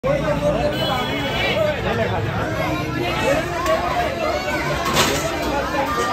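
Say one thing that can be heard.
A large crowd of men, women and children chatters loudly all around.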